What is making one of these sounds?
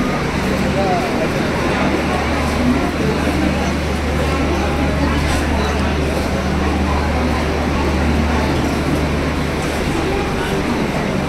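A train's engine hums low and steady nearby, then stops.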